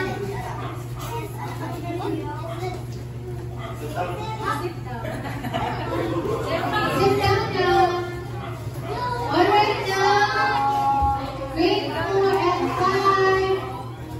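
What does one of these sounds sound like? Young children chatter and call out excitedly nearby.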